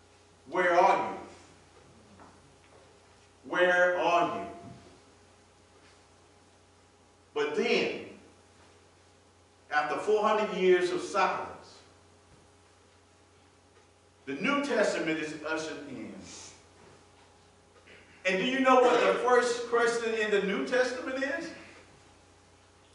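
A man preaches with animation through a microphone in an echoing hall, in short bursts with pauses.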